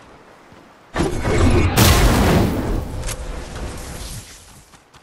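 A video game character bounces into the air with a loud whoosh.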